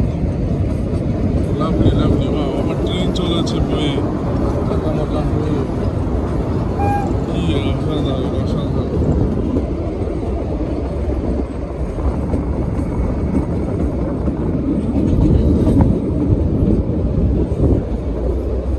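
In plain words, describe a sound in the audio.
A small train rumbles and rattles steadily along its track.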